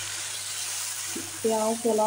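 A spoon scrapes and stirs food in a pan.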